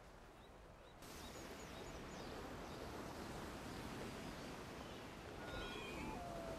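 Surf crashes and foams against rocks.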